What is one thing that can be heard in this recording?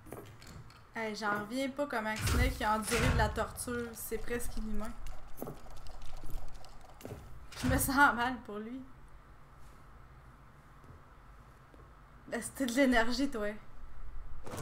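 A young woman talks close to a microphone with animation.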